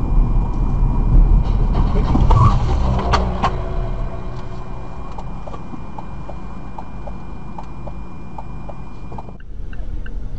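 A car engine hums steadily on the road.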